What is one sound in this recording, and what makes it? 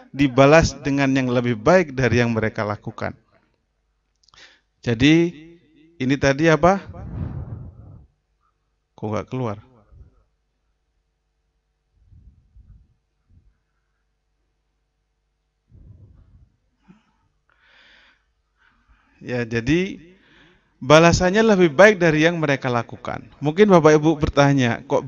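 A man speaks calmly into a microphone in a large, echoing hall.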